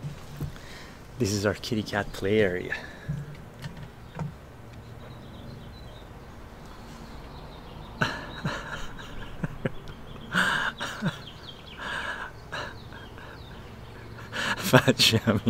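An older man talks and laughs close by, in a relaxed way.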